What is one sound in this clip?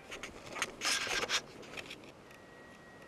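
A phone rustles as it is handled close by.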